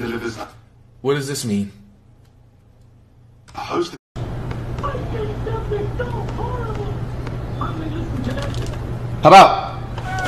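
A young man talks into a microphone.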